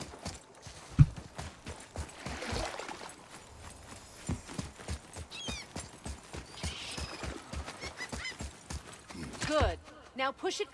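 Heavy footsteps run quickly on stone.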